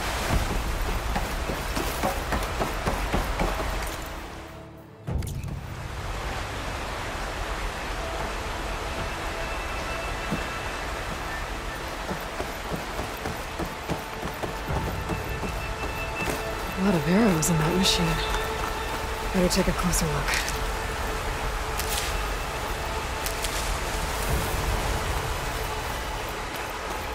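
Footsteps run quickly over grass and leaves.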